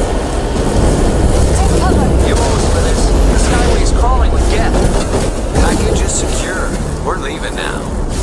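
A heavy vehicle engine rumbles as it drives over rough ground.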